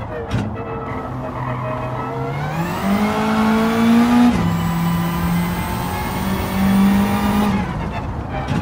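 A racing car engine roars and revs higher, dropping in pitch as it shifts gear.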